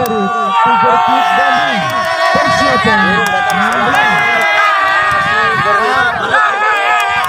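A large crowd of men and women shouts and cheers loudly outdoors.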